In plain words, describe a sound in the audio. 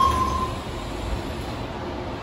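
Sliding train doors thud shut.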